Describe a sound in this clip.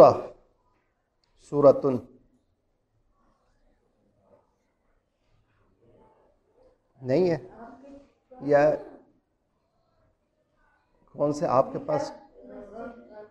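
A man speaks calmly close by, in short phrases with pauses.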